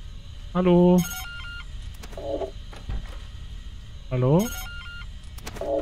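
An electronic panel beeps.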